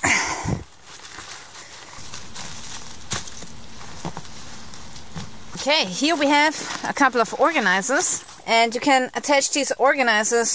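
Nylon fabric rustles and crinkles as it is handled up close.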